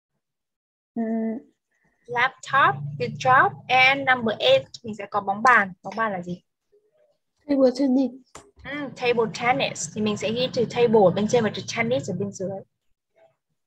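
A young woman speaks calmly and clearly through an online call.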